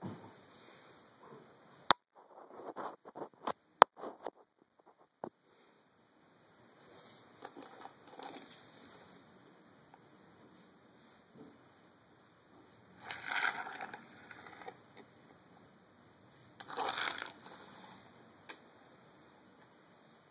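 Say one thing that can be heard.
Coins clink and slide on a wooden floor.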